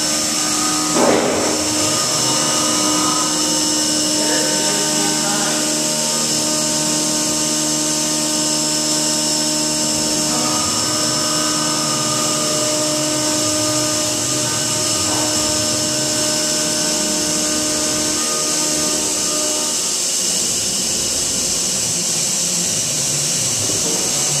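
A milling cutter whines steadily as it cuts metal.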